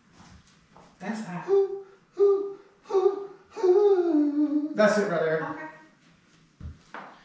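A man sings loudly into a microphone.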